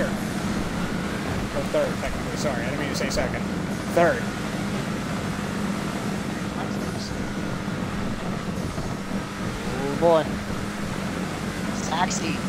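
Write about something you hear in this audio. A race car engine drones steadily.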